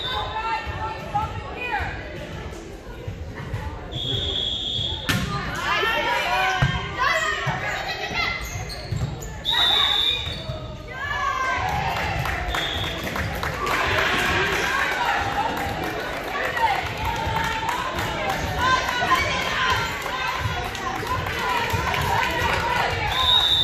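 Young women shout and call out to each other in an echoing gym.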